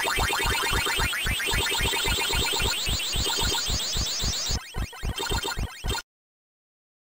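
Electronic chomping blips repeat rapidly in an arcade game.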